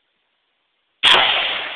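A rifle fires a loud shot close by, outdoors.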